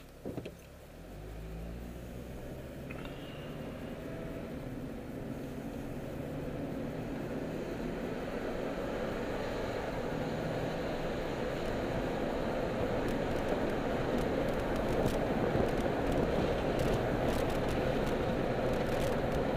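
Tyres rumble on the road as the car picks up speed.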